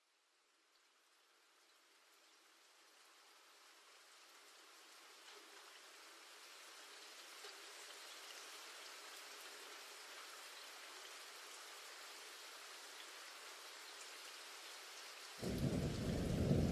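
Heavy rain pours down steadily outdoors, growing louder.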